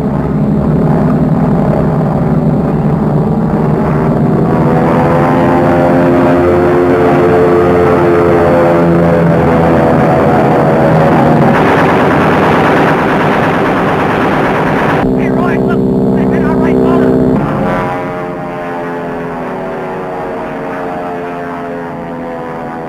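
Propeller plane engines drone loudly overhead, rising and falling in pitch as they pass.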